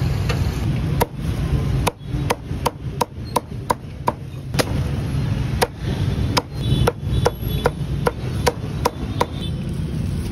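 A cleaver chops through roast goose on a wooden chopping block.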